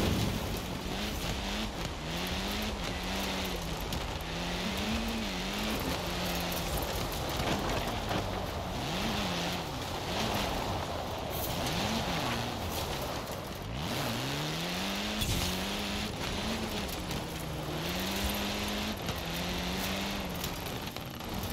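A rally car engine revs hard, rising and falling as gears shift.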